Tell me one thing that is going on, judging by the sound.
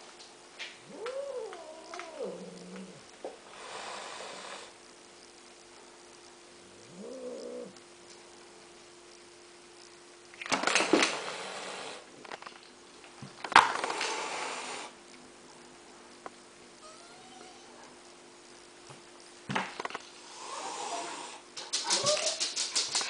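A cat meows loudly nearby, several times.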